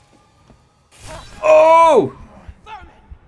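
A young man shouts in alarm.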